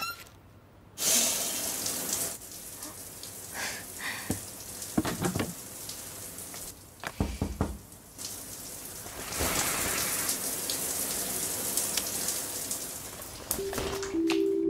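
Water sprays from a shower head.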